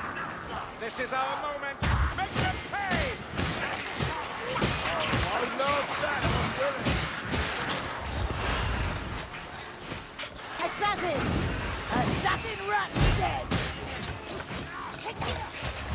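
Creatures shriek and snarl close by.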